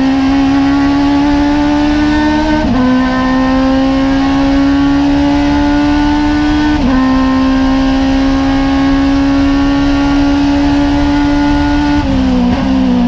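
A small race car's four-cylinder motorcycle engine howls at full throttle from inside the cockpit.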